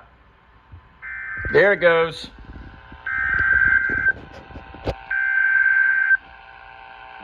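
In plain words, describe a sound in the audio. A radio sounds short, shrill alert beeps.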